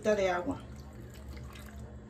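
Liquid pours into a cup.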